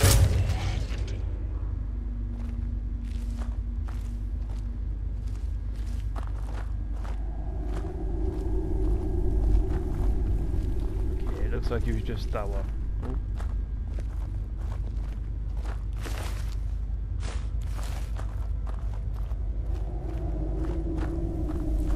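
Footsteps crunch on gravelly ground.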